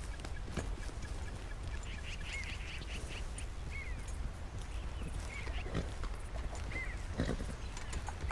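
A horse's hooves thud slowly on soft ground.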